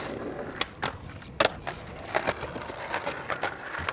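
A skateboard lands with a sharp clack on concrete.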